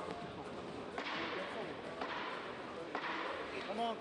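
Gloved punches thud against a fighter.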